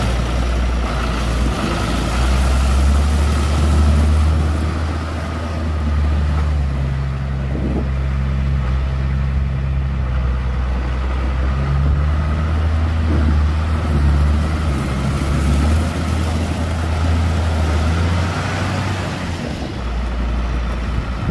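A tractor's diesel engine rumbles steadily nearby.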